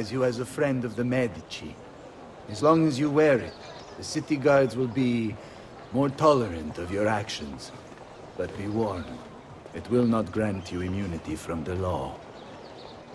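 A man speaks calmly and formally, close by.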